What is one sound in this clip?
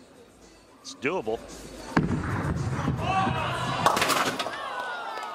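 A bowling ball rolls down a lane and crashes into pins.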